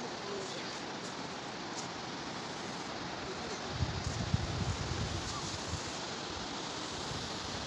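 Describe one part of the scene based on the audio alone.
A stick scratches lines in sand.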